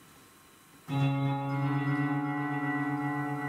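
A keyboard begins playing a steady chord through loudspeakers.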